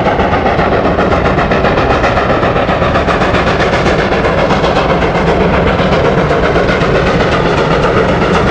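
A steam locomotive chuffs steadily in the distance.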